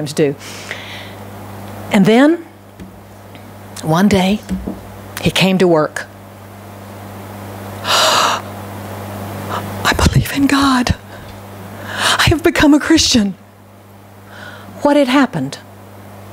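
An older woman speaks slowly into a microphone, with pauses.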